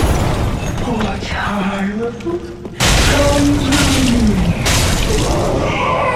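A monster lets out a deep, groaning roar.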